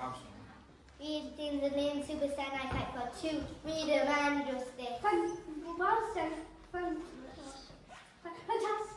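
A child speaks loudly and theatrically on a stage.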